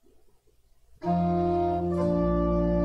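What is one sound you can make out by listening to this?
A piano plays sustained chords, loud and close.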